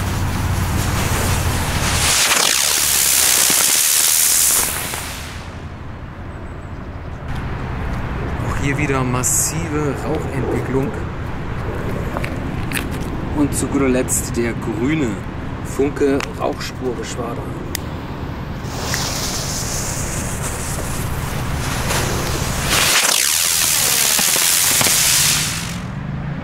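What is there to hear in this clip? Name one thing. A firework rocket hisses loudly as it launches and shoots upward.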